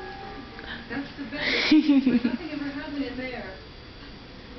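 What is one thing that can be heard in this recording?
A baby squeals and babbles nearby.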